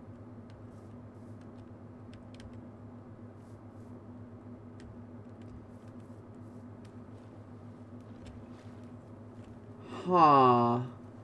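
Water trickles softly.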